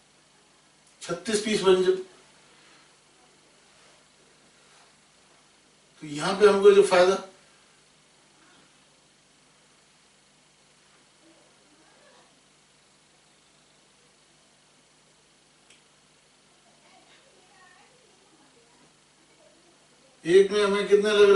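A man speaks loudly in short bursts, close by.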